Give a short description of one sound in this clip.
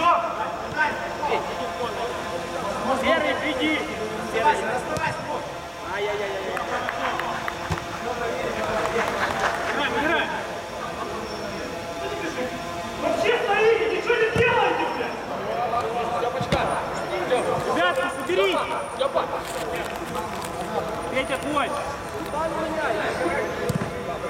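A football is kicked on artificial turf.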